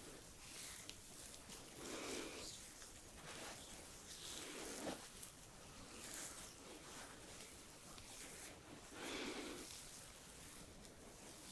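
Hands rub and glide softly over skin close by.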